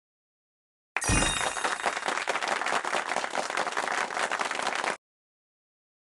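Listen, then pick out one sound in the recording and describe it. Confetti bursts with a crackling rattle.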